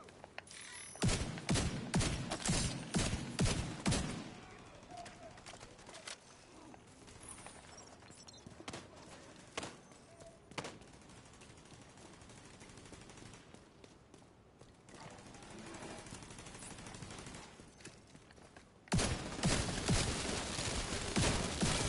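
Rapid gunfire cracks in bursts close by.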